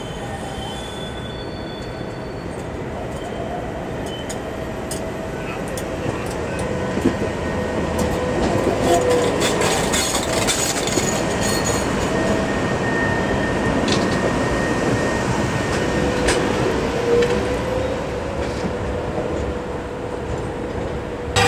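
A tram rumbles past close by on the rails.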